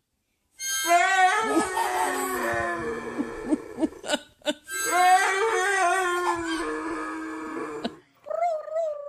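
A dog howls loudly.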